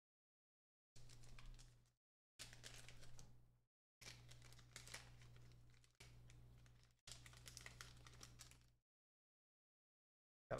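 A foil wrapper crinkles and rustles as hands tear it open.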